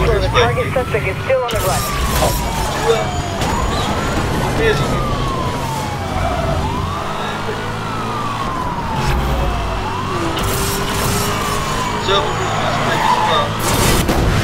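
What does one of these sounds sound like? A sports car engine roars loudly at high speed.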